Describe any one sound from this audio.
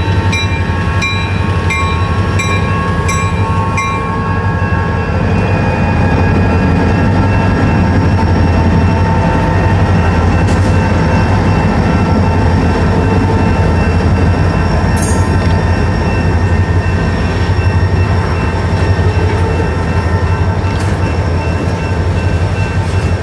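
A freight train rumbles past with a steady, heavy roar and clatter of wheels.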